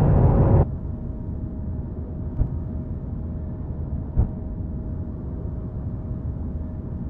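A spaceship engine hums low and steady.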